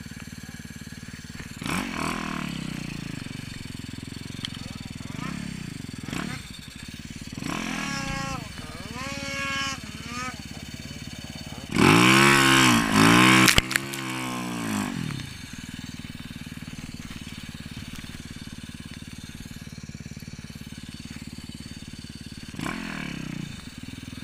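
A dirt bike engine revs up and down close by, roaring loudly at times.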